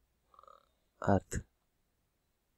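A man says a few words over an online call.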